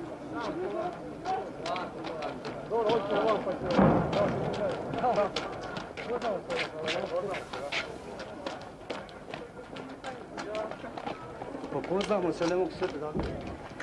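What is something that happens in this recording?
Men and women talk nearby in a crowd outdoors.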